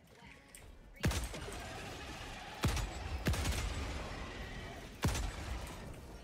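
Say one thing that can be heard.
A rifle fires loud sharp shots with a ringing echo.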